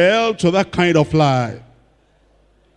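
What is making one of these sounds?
An elderly man speaks forcefully into a microphone through loudspeakers.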